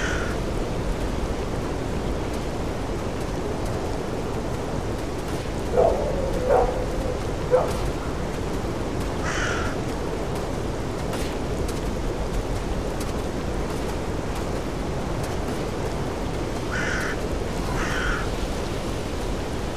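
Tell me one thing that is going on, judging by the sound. Wind blows steadily through the trees outdoors.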